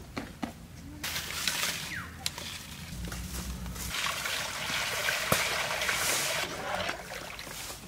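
Water pours and splashes into a metal pan.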